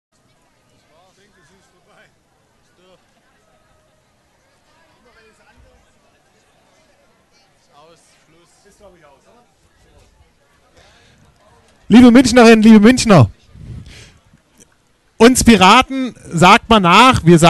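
A crowd murmurs and chatters in the distance outdoors.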